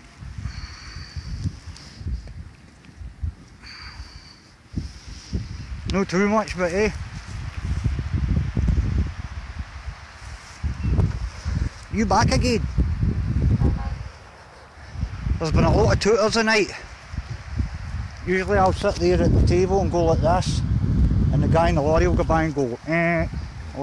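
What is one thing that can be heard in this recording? Wind blows and rumbles across the microphone outdoors.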